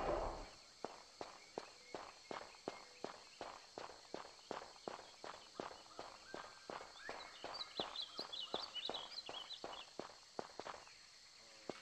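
Quick footsteps run across stone.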